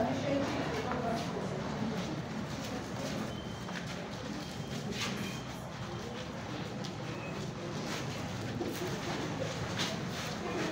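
A crowd of children and adults murmurs and chatters in an echoing room.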